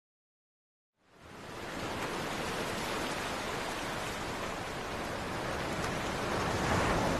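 Ocean waves wash and roar steadily onto the shore.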